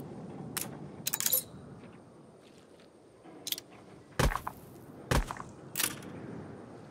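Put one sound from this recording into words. Short game interface clicks and chimes sound now and then.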